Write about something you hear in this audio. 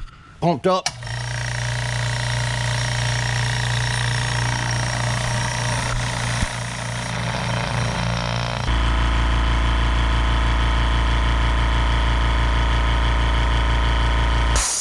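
An air compressor motor runs with a steady hum, growing louder partway through.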